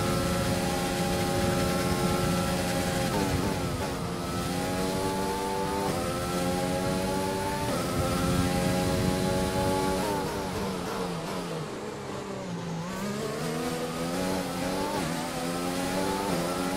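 A racing car engine screams at high revs, rising through the gears and dropping sharply when braking.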